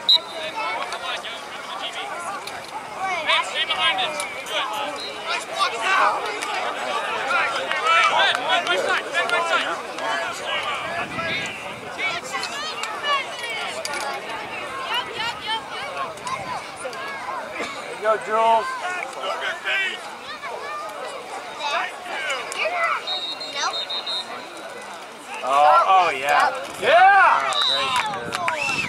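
Young players call out to each other across an open field.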